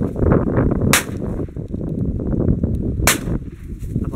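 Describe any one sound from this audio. A shotgun fires.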